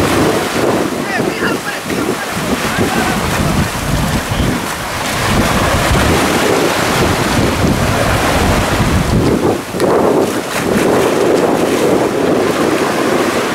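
A woman splashes through shallow water.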